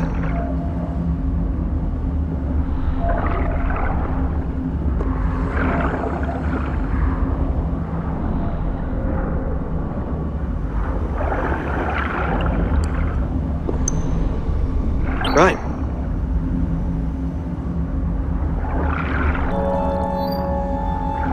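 Heavy machinery hums with a steady low drone.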